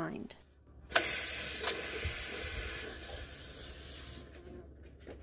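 An aerosol spray hisses in a long, steady burst.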